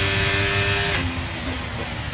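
A racing car engine drops in pitch as the car slows for a corner.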